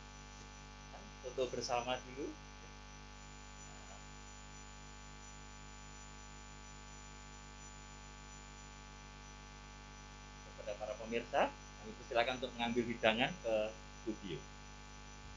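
A man speaks briefly with pauses, heard through a microphone.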